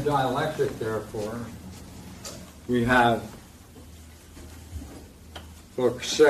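An elderly man speaks in a lecturing manner.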